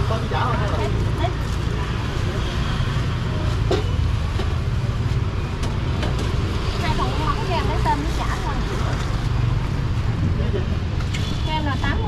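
Street traffic rumbles steadily outdoors.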